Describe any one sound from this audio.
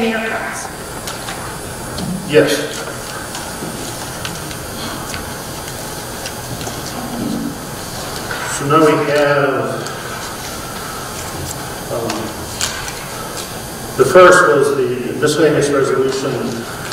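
A middle-aged man speaks over a microphone in a large echoing hall, pausing between phrases.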